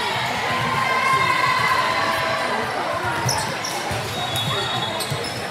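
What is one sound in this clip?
A crowd of girls and adults chatter and call out in a large echoing gym.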